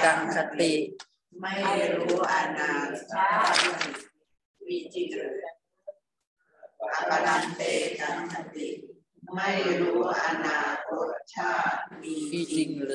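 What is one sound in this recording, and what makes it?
A woman speaks calmly over an online call, pausing now and then.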